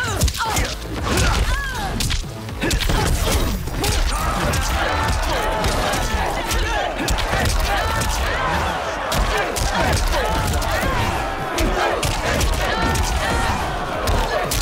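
Punches and kicks land with heavy thuds and smacks.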